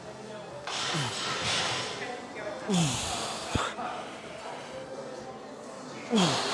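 A man grunts with strain.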